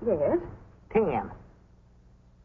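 An elderly man laughs close by.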